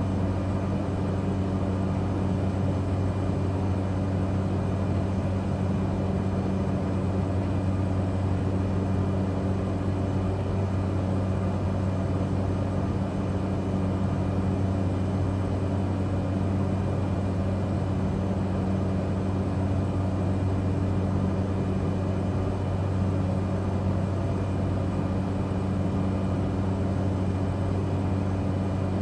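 A small aircraft's engine drones steadily throughout.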